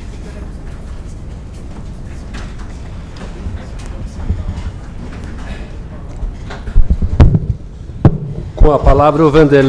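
People murmur and talk quietly in a large room.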